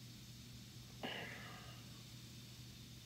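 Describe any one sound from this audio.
A man lets out a sudden loud breath in a reverberant hall.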